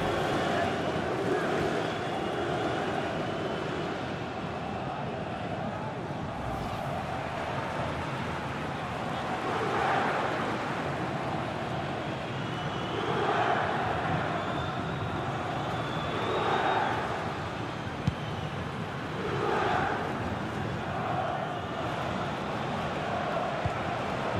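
A large stadium crowd roars steadily, swelling louder now and then.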